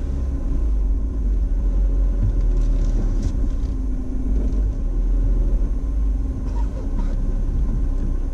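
A car engine hums low and steady from inside the cabin.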